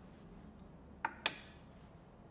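Glass clinks against a wooden rail.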